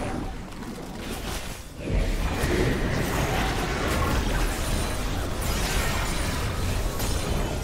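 Magic spells burst and crackle in a video game battle.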